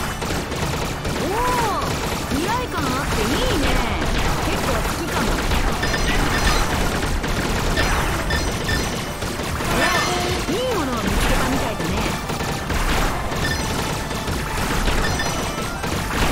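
Rapid shots and electronic blips fire again and again.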